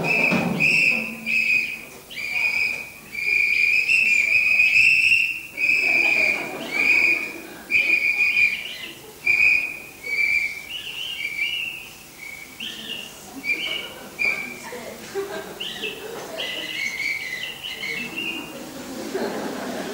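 A band plays lively music in a large hall.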